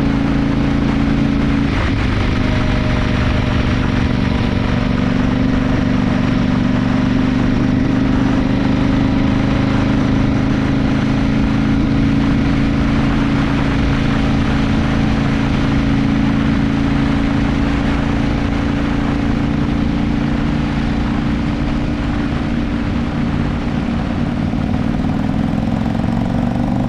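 Tyres roll on a rough road.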